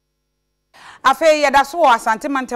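A young woman speaks clearly into a microphone, like a news presenter.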